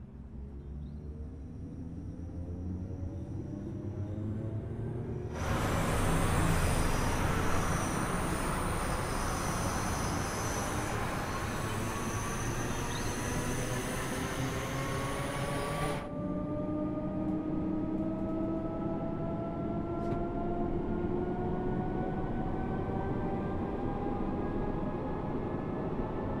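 A train's wheels rumble over the rails.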